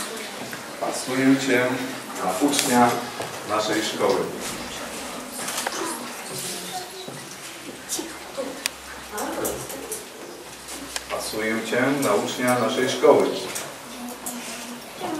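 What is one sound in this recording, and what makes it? A man speaks in a formal tone, close by in a room with an echo.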